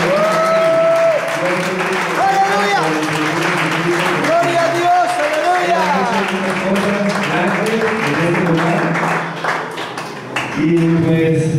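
A crowd of people calls out and murmurs nearby.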